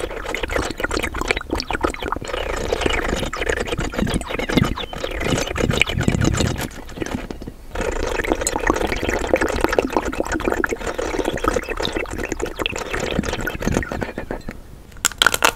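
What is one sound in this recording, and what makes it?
A woman licks and sucks on hard candy with wet smacking sounds close up.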